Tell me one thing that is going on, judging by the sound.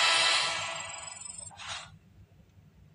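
A bright game jingle with coins tallying plays, then stops abruptly.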